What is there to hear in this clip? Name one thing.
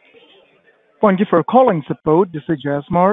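A man speaks on a telephone.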